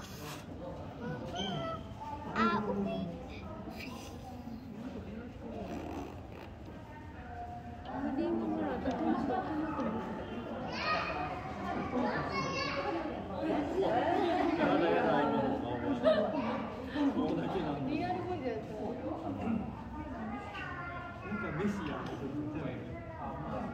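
Several adults chatter and talk nearby in an echoing indoor hall.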